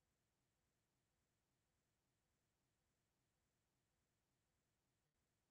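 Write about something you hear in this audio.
A clock ticks steadily, very faintly.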